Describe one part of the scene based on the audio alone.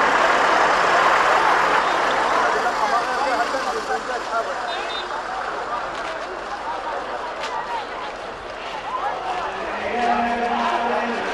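A large crowd of men and women murmurs and chatters outdoors.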